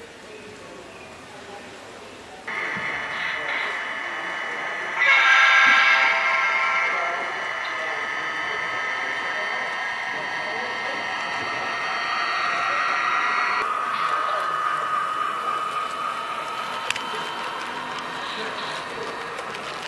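An HO scale model train rolls along the track.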